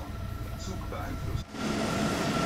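A train rushes past at speed.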